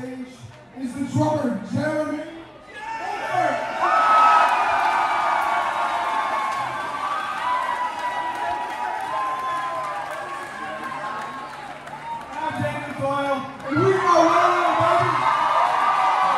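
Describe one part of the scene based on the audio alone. An electric guitar strums loudly and close by.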